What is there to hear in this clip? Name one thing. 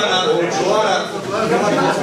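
A middle-aged man speaks close by.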